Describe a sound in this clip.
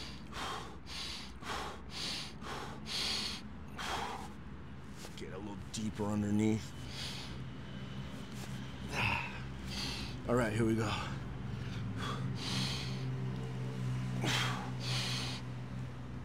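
A man breathes hard in sharp, rhythmic bursts.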